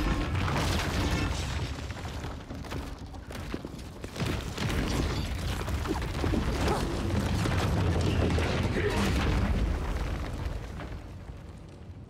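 Heavy blows and thuds land in a fast scuffle.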